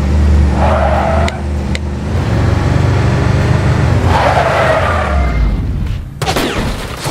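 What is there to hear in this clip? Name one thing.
A car engine roars steadily.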